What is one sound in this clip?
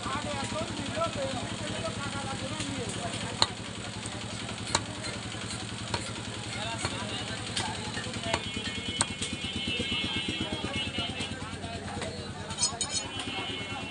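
A cleaver chops meat on a wooden block with sharp thuds.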